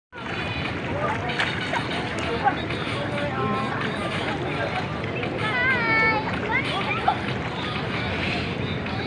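A crowd of children and adults chatters and shouts in an outdoor pool.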